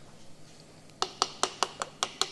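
A metal piston clicks as it is pushed into an engine cylinder.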